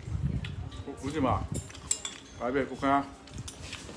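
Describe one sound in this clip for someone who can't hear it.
A young man speaks casually, close to the microphone.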